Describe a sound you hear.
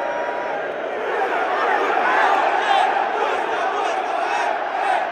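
A large crowd cheers and whistles.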